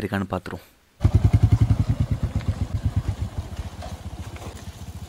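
A motorcycle engine idles and putters with a steady throbbing beat close by.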